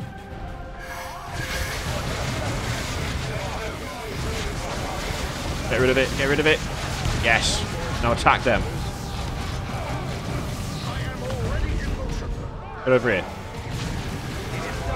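Gunfire and blasts crackle through a battle.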